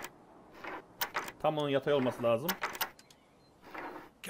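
A metal lockpick clicks and scrapes inside a lock.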